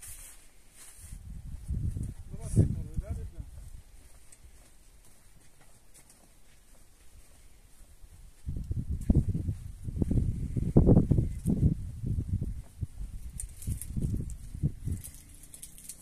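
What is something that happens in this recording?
Tent fabric flaps and rustles in gusts.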